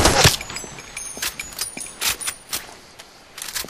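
A rifle's magazine clicks and clacks during a reload.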